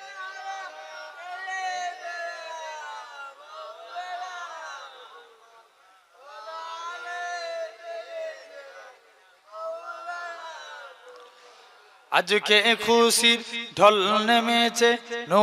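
A young man sings through a microphone and loudspeaker.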